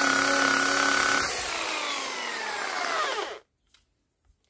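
A power drill whirs loudly and then winds down.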